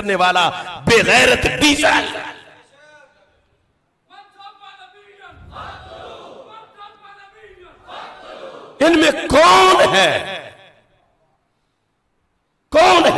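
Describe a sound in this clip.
A man preaches passionately into a microphone, his voice echoing through loudspeakers.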